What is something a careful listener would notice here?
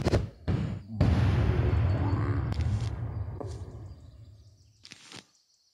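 A deep, booming game sound swells up and then slowly fades away.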